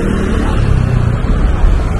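A motor scooter rides past on a street.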